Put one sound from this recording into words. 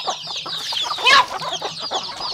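Water pours and splashes into a metal bowl.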